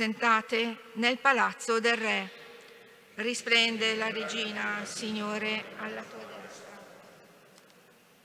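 A man chants into a microphone, echoing through a large hall.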